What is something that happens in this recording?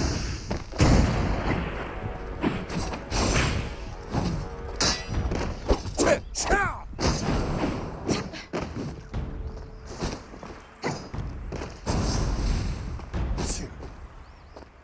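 Swords clash and slash in quick bursts.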